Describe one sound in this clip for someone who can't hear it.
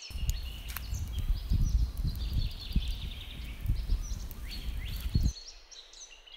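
A wood fire crackles and hisses.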